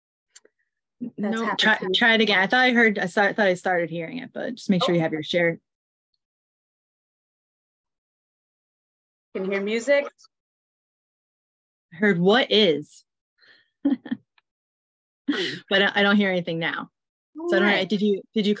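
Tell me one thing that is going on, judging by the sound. A woman talks calmly through an online call microphone.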